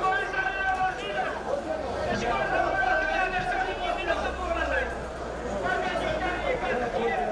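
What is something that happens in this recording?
Men talk to each other close by outdoors.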